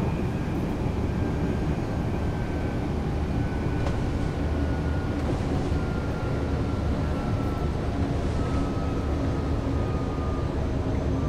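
An electric train motor hums and its pitch slowly falls as the train slows.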